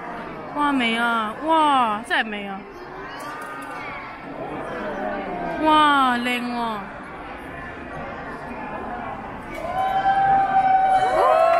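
Children's voices chatter and call out excitedly nearby.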